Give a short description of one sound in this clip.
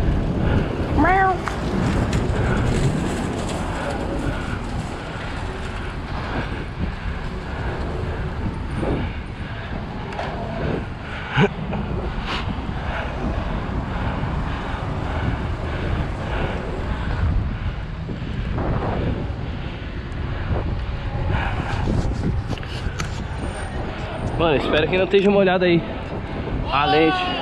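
Wind rushes past at speed.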